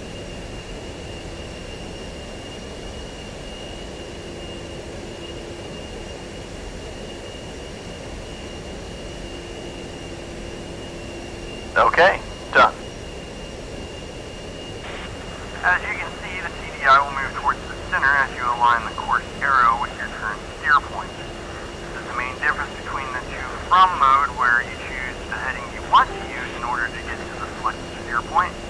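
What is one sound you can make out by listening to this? A jet engine drones steadily with a high, thin whine.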